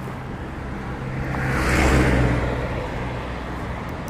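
A bus passes close by with a rising and fading roar.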